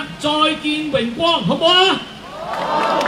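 A young man sings loudly through a loudspeaker outdoors.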